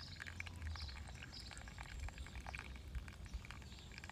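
Hot water trickles from a tap into a glass.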